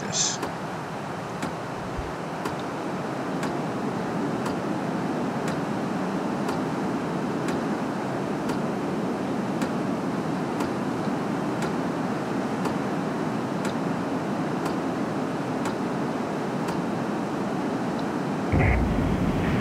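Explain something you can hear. Jet engines roar steadily as an aircraft flies.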